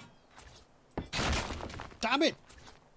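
A wooden structure crumbles with a rushing crash.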